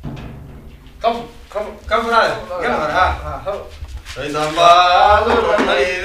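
Men talk calmly.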